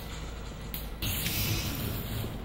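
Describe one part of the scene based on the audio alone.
Electric sparks crackle and hiss loudly.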